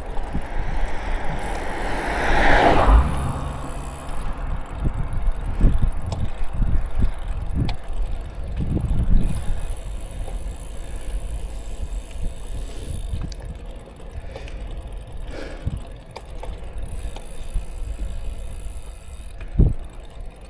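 Wind buffets and rumbles against a microphone outdoors.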